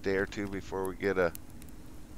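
A fire crackles softly in a stove.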